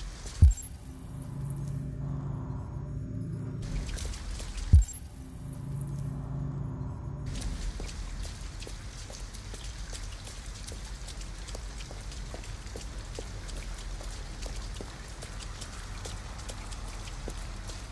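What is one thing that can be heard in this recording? Footsteps splash on wet pavement.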